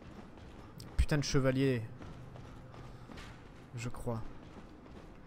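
A young man speaks briefly and with animation close to a microphone.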